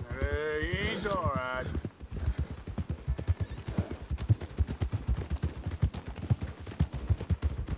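Horses' hooves thud steadily on a soft dirt path.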